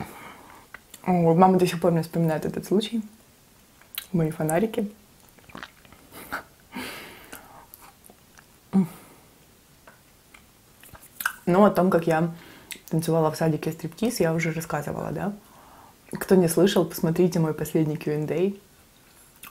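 A young woman speaks softly and close to a microphone.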